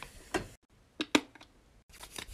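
A pump dispenser squirts gel into a palm.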